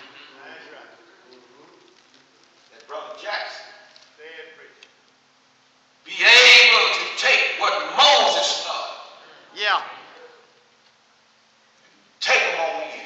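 A man preaches through a microphone with rising passion, in a room with some echo.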